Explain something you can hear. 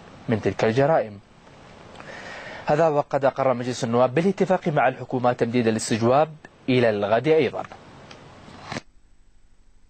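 A man speaks steadily and clearly through a microphone.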